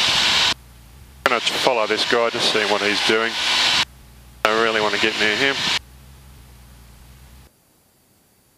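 A propeller engine drones steadily, muffled through the intercom.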